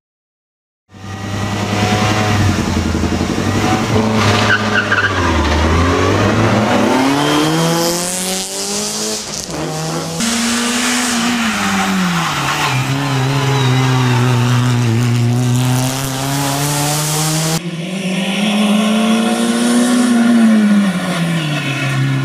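A rally car engine revs hard and roars as the car speeds past.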